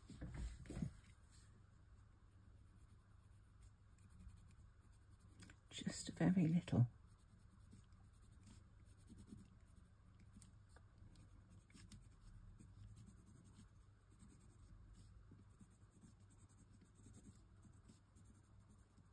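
A watercolour pencil scratches softly on textured card.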